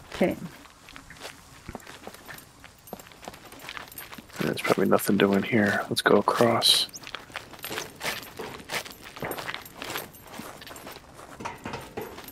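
Footsteps crunch steadily on gravel.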